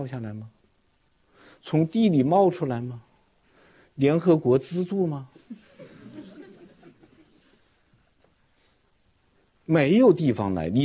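A middle-aged man speaks with emphasis into a microphone, in short questioning phrases with pauses.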